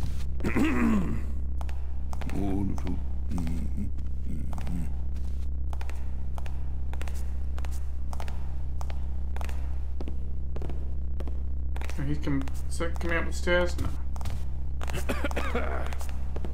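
Footsteps tap steadily along a hard floor.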